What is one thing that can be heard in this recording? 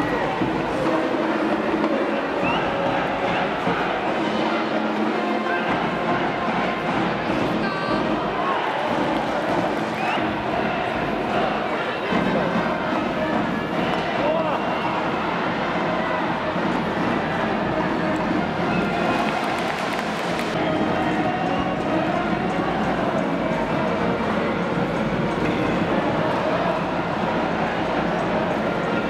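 A large stadium crowd cheers steadily throughout.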